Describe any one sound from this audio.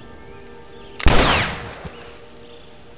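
A gunshot cracks loudly and echoes away.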